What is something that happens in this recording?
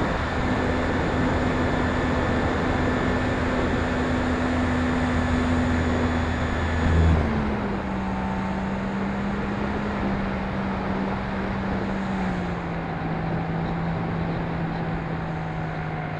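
A model airplane's electric motor whines steadily, dropping in pitch as the plane slows.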